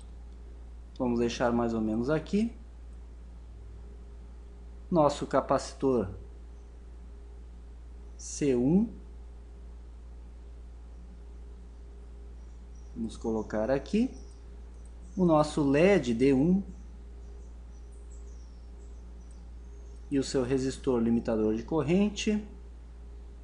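A young man speaks calmly and closely into a microphone, in short phrases with pauses.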